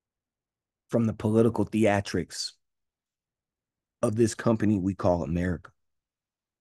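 A man speaks calmly through a broadcast.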